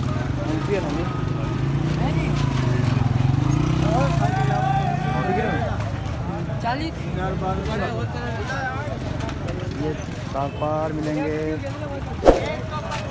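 Men talk over one another in a busy crowd outdoors.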